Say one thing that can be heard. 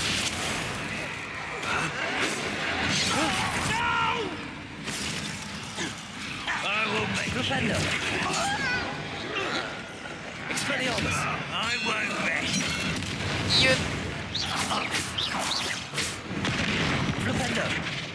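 Magic spells crackle and burst in combat.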